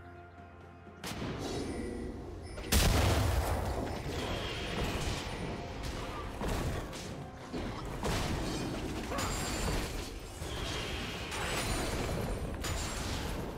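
Fiery magic blasts burst and crackle.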